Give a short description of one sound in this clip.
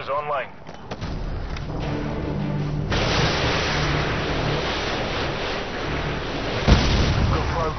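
A missile roars steadily as it streaks downward.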